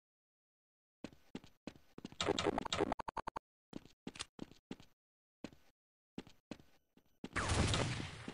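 Footsteps patter on stone and sand.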